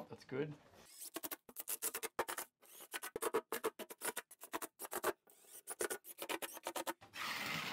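A power drill whirs in short bursts, driving screws.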